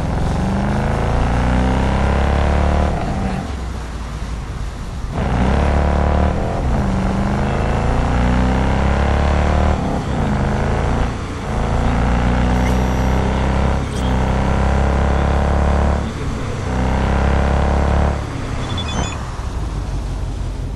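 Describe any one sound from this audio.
A car engine revs hard and climbs in pitch, dropping off again and again as it shifts gears.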